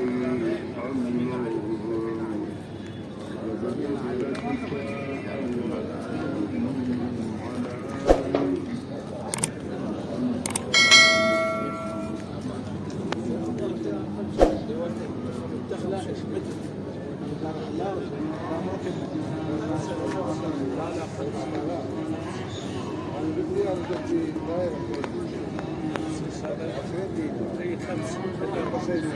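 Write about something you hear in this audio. Outdoors, a crowd of men and women murmurs and chatters in the background.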